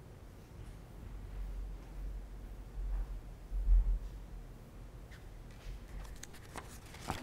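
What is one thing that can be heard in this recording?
Footsteps thud softly across the floor.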